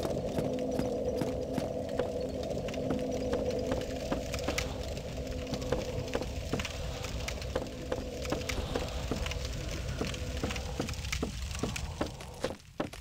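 Bare footsteps patter on wooden planks.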